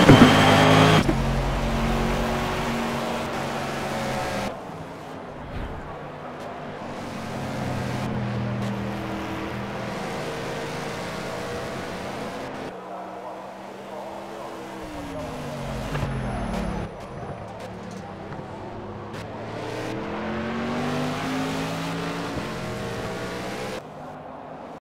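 Racing cars speed past, their engines rising and falling in pitch.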